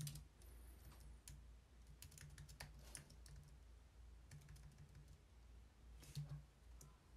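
Computer keys click as someone types quickly.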